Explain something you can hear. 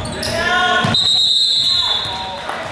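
A referee's whistle blows a sharp, shrill blast in a large echoing gym.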